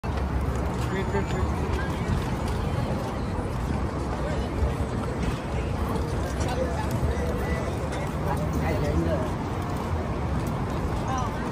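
People chatter faintly in a busy crowd around.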